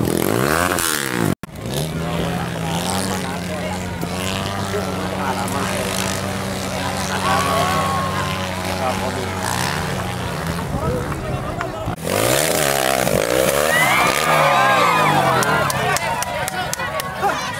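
A crowd chatters and shouts outdoors.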